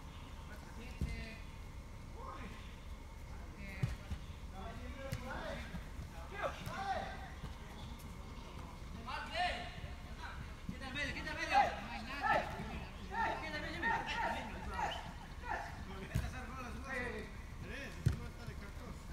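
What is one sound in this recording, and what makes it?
A soccer ball is kicked with dull thuds.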